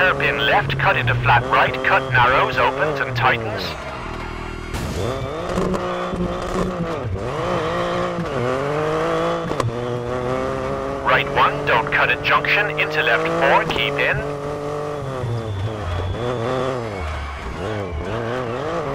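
A car engine revs hard, rising and falling in pitch as the gears change.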